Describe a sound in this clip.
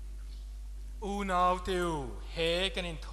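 A man chants in a sung voice.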